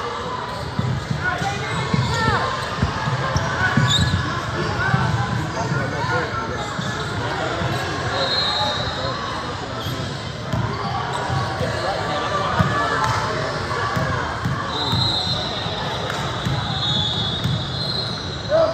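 Young girls call out to each other in a large echoing hall.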